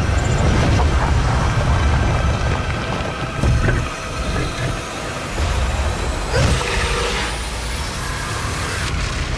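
Fire roars and crackles in a deep rumble.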